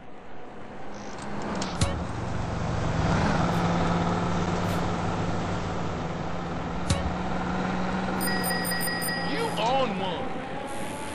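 A car engine hums steadily as traffic passes close by.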